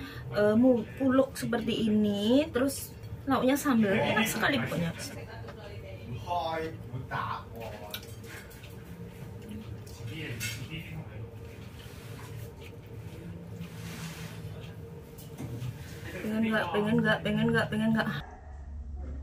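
A middle-aged woman talks calmly close to a microphone.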